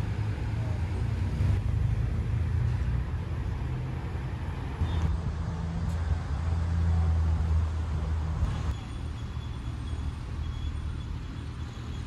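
A sports car engine idles nearby with a deep, steady rumble.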